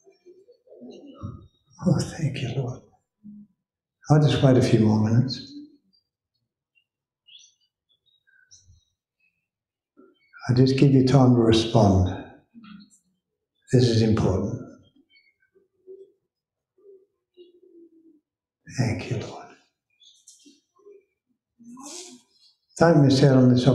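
A man speaks calmly into a headset microphone, with pauses between phrases.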